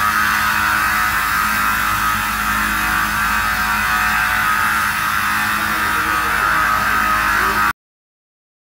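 A multi-blade rip saw runs, cutting through wood.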